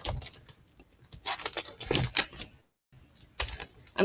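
Cardboard rustles and scrapes as it is handled.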